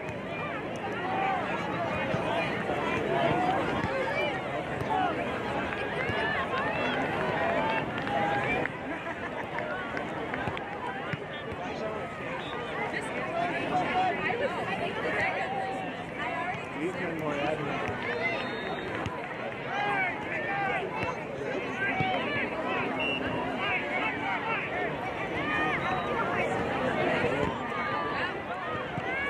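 Young players shout to each other across a field.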